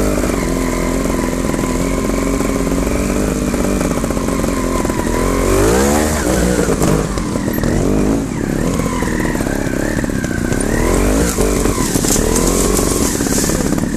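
A motorcycle engine runs steadily close by.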